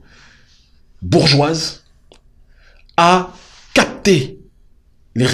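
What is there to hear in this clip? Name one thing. A man speaks calmly and closely into a microphone, with pauses.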